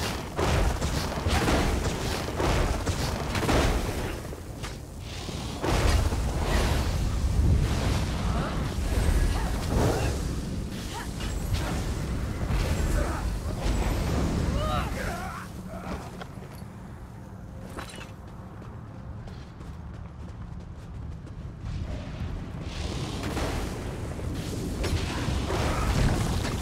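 Weapons clash and spells crackle in a fight.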